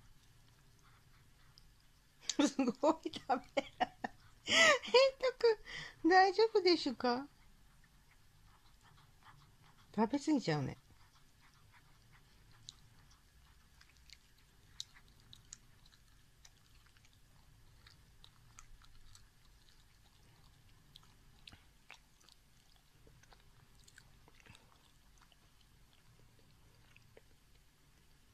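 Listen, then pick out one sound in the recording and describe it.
A cat chews and licks wetly at food, close by.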